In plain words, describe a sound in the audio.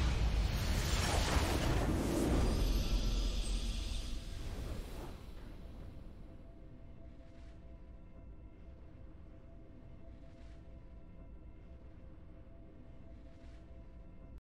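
A triumphant game fanfare swells and then fades into a soft hum.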